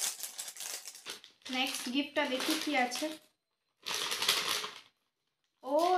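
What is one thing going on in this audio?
A plastic snack packet crinkles.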